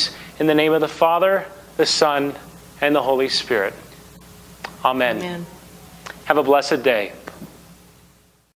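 A man speaks calmly and warmly, close by.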